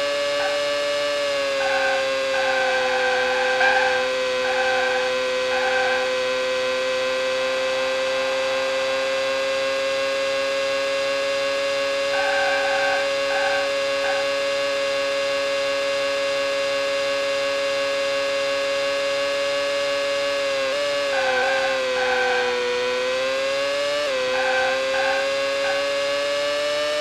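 A racing car engine whines steadily at high revs, dipping and climbing in pitch as it shifts gears.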